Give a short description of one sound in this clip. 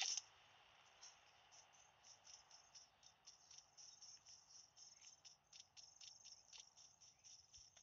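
Footsteps rustle quickly through grass.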